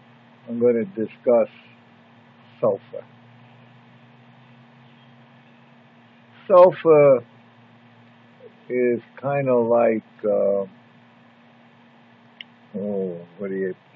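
An elderly man speaks calmly and slowly, close to the microphone, with long pauses.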